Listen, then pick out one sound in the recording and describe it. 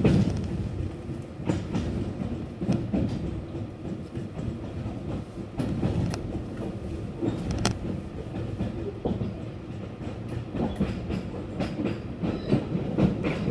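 Train wheels clatter and knock on the rails.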